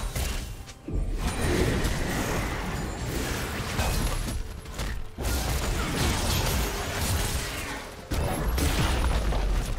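Magic blasts crackle and burst in a hectic fight.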